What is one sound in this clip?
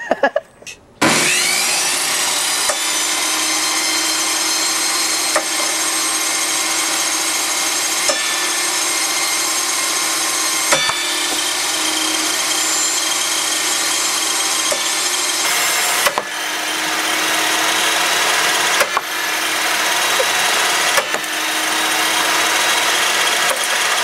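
A table saw motor starts and runs with a steady loud whine.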